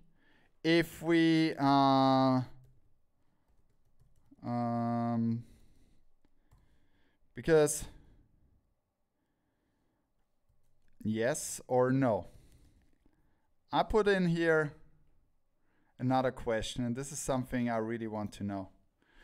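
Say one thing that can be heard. A man speaks close into a microphone, in short phrases with pauses.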